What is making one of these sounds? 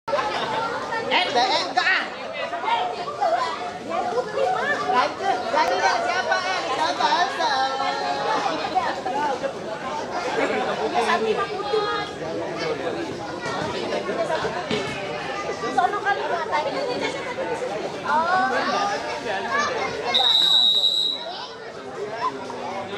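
Several young men talk and call out to each other outdoors.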